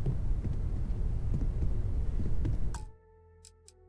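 Footsteps tap on wooden stairs.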